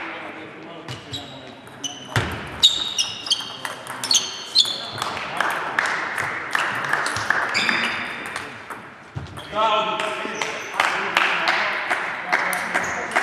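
Sports shoes squeak on a hard floor in an echoing hall.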